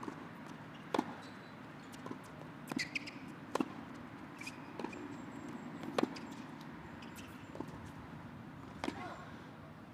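A tennis ball is struck with rackets in a sharp, rhythmic rally.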